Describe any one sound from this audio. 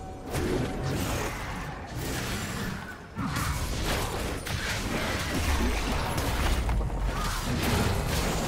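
Video game spell effects whoosh and crackle in a fight.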